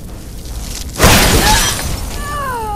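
A magic spell crackles and bursts loudly.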